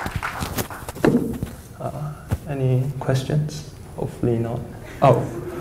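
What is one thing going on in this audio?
A young man speaks calmly into a microphone.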